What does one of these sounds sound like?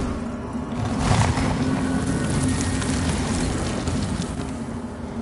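A blade swishes through the air with a loud magical whoosh.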